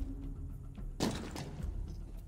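A heavy thud sounds as someone lands from a jump.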